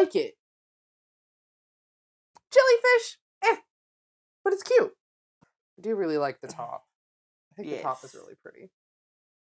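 A woman talks with animation close to a microphone.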